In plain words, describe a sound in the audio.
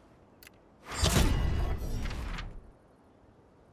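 A loud whooshing burst sounds.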